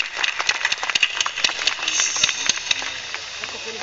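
A large outdoor crowd claps.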